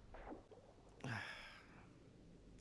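A sharp crunch sounds as a small figure falls onto spikes.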